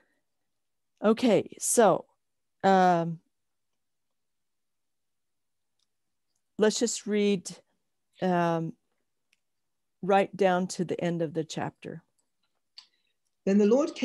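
A woman speaks calmly in short phrases over an online call.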